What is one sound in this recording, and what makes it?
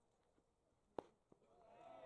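A baseball smacks sharply into a catcher's mitt.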